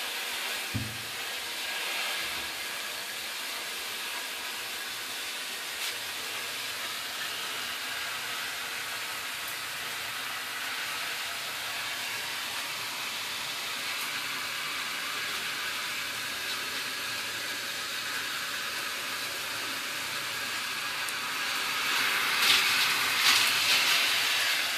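Water from a running shower hisses steadily behind a closed door.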